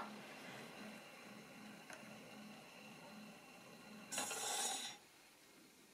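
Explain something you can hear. A gramophone turntable whirs with a steady, rhythmic hum.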